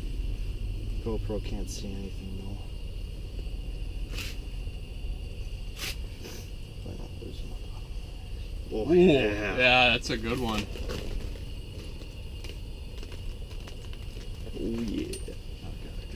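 A young man speaks briefly and casually nearby.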